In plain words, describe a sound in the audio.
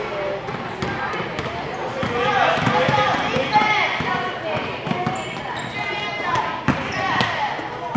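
A basketball bounces on a wooden floor as a child dribbles.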